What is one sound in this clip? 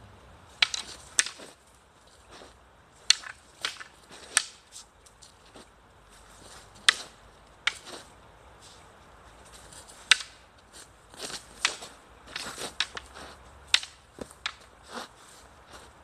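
Wooden staffs clack sharply against each other outdoors.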